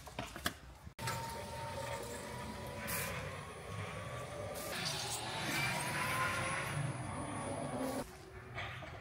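An electric forklift hums and whines as it drives.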